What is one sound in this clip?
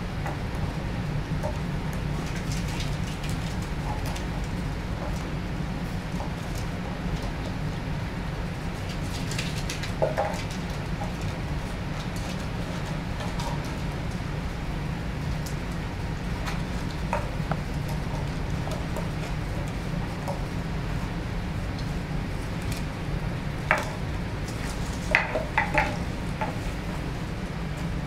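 Puppies' claws patter and scrape on a hard floor.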